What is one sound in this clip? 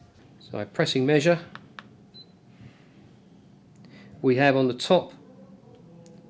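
Buttons on a small handheld device click under a fingertip.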